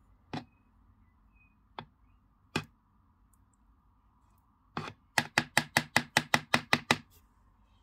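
A brush scrapes and taps against a plastic tub.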